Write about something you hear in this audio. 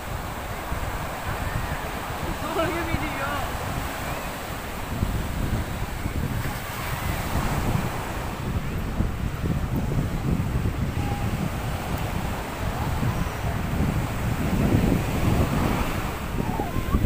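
Waves wash onto a sandy shore.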